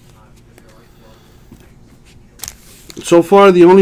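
Trading cards slide and rustle softly in hands.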